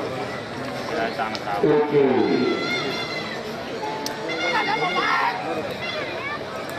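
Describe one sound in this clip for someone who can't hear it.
A man shouts at bullocks outdoors.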